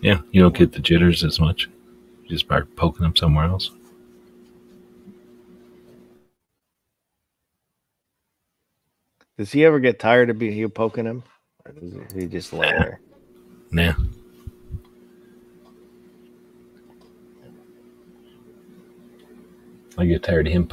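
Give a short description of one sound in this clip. A man talks with animation through a headset microphone, as if on an online call.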